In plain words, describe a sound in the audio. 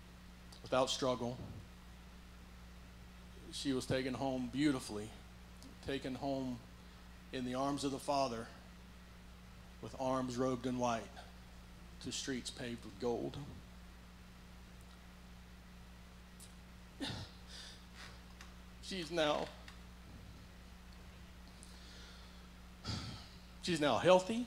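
An elderly man speaks calmly through a microphone in a large echoing hall, pausing between phrases.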